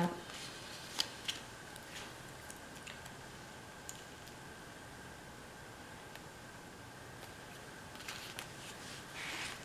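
Sticker paper peels and rustles softly close by.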